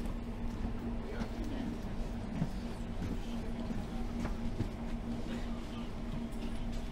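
A low steady hum drones inside a train carriage.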